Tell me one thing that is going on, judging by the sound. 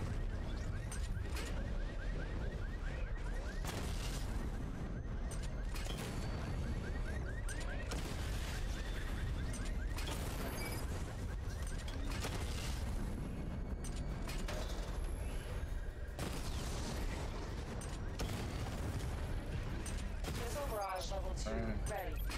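Gunfire and explosions crack and boom.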